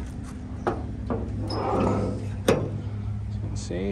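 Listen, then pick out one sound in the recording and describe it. A car hood clunks and creaks open.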